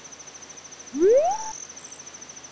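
A quick rising electronic whoop sounds once.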